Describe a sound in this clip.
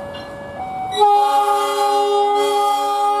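A locomotive horn blasts a long, loud chord.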